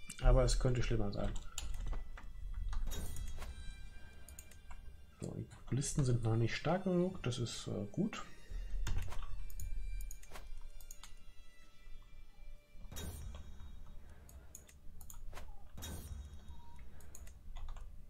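Short soft interface clicks sound as menus open and close.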